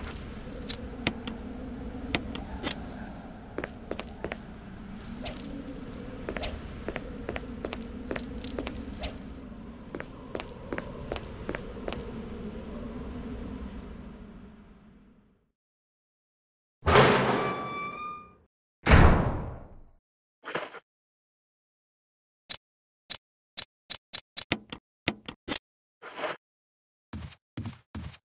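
Menu selections click with short electronic beeps.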